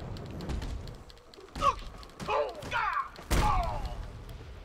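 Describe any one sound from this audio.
Heavy blows thud in a fight.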